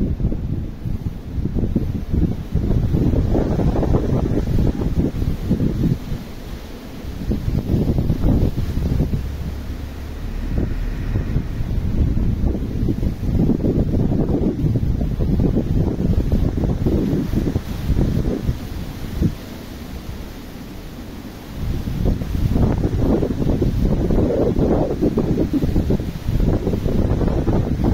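Wind gusts outdoors, rumbling against the microphone.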